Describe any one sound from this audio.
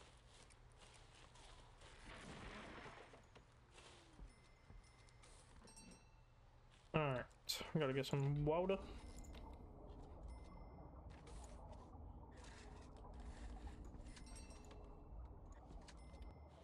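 Soft game interface clicks sound as items are placed.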